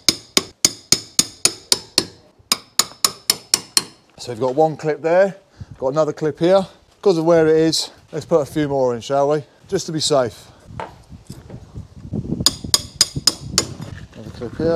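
A hammer taps rapidly on a metal tool.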